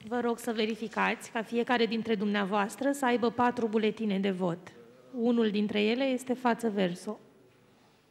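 A woman speaks into a microphone with animation, heard close and clear.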